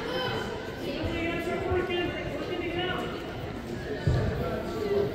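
Wrestlers thump and scuffle on a mat.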